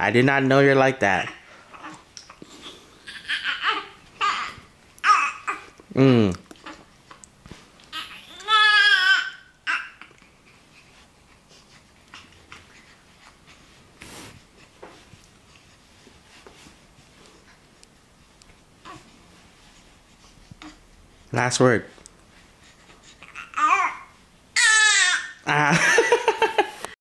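A baby coos and fusses in short bursts close by.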